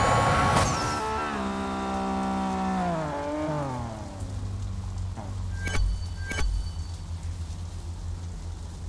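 A car engine winds down in pitch and settles to a low idle.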